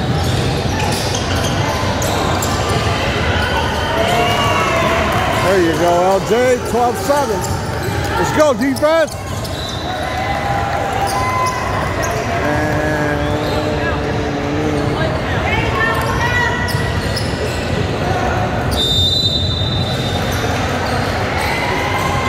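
Teenage boys call out to each other in a large echoing hall.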